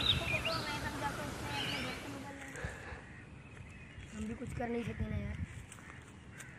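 Young boys talk with animation close by, outdoors.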